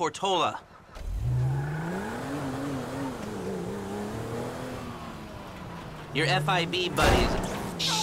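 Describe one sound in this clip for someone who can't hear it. A car engine starts and revs as the car drives off.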